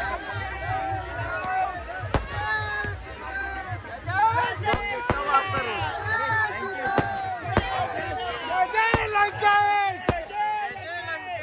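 Fountain fireworks hiss and crackle.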